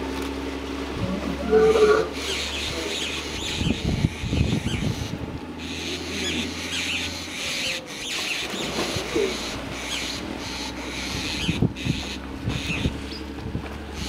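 Hippos grunt and bellow loudly.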